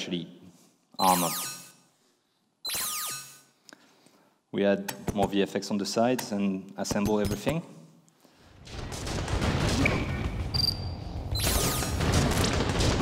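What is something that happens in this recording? A shimmering energy shield whooshes on.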